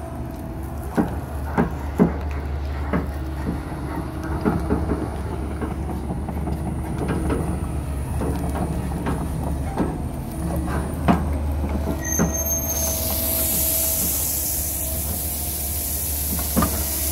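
An excavator bucket scrapes and knocks against dirt and stones.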